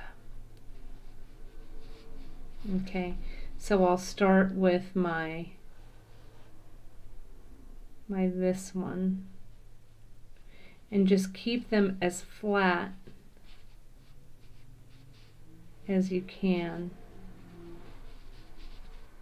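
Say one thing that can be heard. A thin cord rustles softly as fingers pull and tie it.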